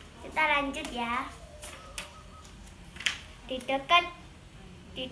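A young girl reads aloud slowly, close by.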